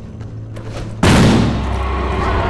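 A heavy metal door bursts open with a loud crash.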